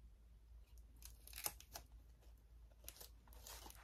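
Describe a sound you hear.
Small items rustle and tap softly as they are handled.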